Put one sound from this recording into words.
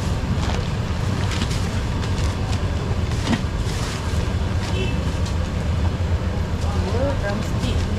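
A plastic bag rustles and crinkles up close.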